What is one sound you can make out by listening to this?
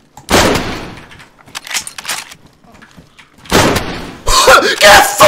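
A gunshot rings out with a short echo.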